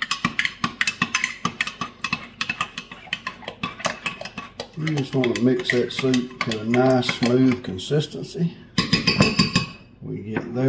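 A spoon scrapes and clinks against a glass jug.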